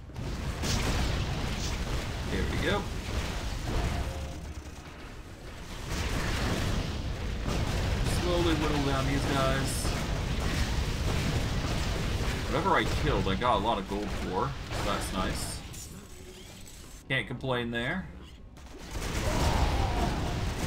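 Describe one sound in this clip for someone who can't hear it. Game spells burst and crackle during a fight.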